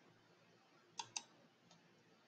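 A mouse button clicks.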